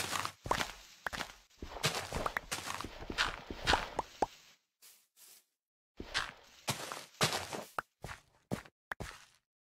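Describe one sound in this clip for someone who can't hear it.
A shovel digs into soil with repeated crunching scrapes.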